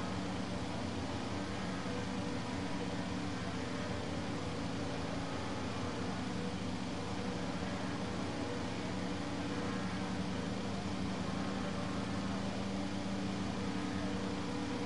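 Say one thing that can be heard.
Several racing car engines idle with a steady low hum.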